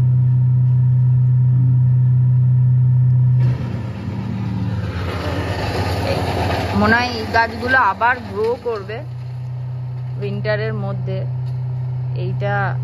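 A wood chipper engine hums steadily in the distance.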